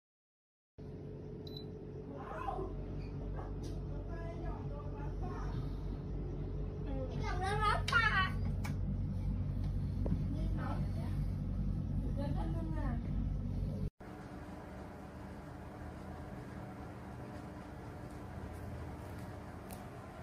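An air purifier fan hums steadily.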